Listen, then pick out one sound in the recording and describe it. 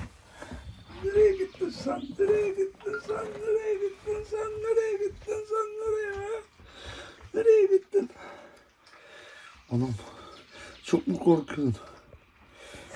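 A fox cub whines and squeals in high, drawn-out cries.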